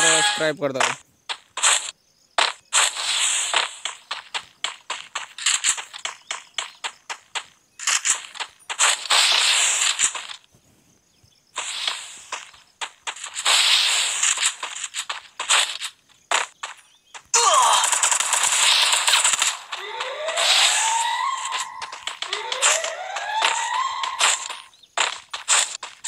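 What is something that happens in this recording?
Gunshots crack in a game.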